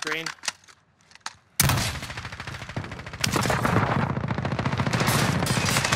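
A rifle fires in bursts.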